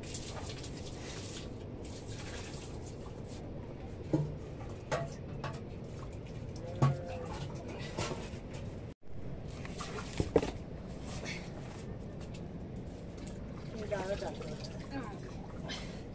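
Liquid pours and splashes into a wooden vessel.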